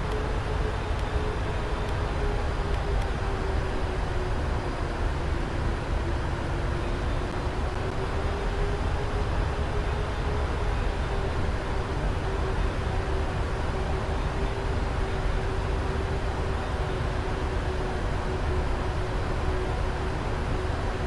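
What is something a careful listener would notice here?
Jet engines drone steadily, with a low steady whine.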